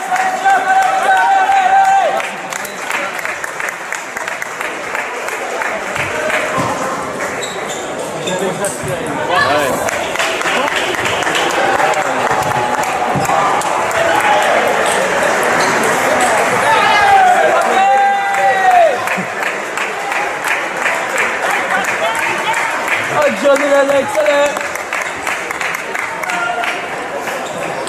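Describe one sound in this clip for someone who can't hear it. Table tennis balls click rapidly against paddles and tables in a large echoing hall.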